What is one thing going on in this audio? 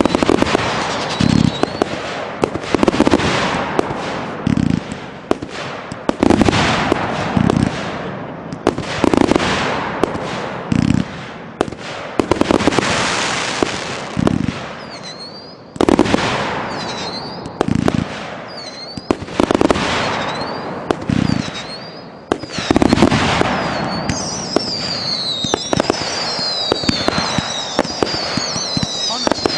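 Fireworks burst with loud booms.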